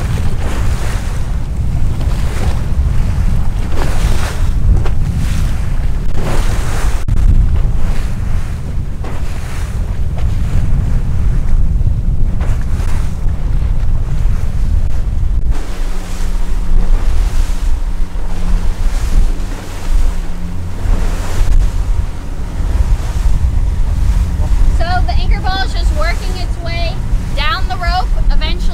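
Water churns and splashes in a boat's wake.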